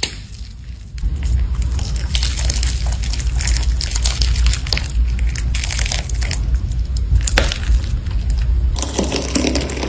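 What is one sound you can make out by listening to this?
Fingers crackle and pop air bubbles in a thick clay.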